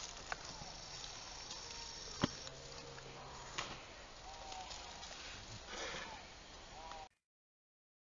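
Leaves rustle as hands pull at plants on the ground.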